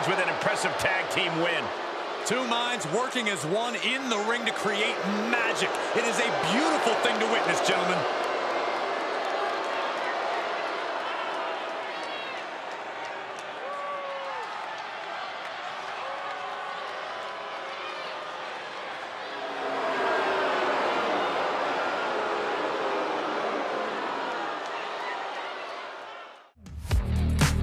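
A large crowd cheers loudly in a big arena.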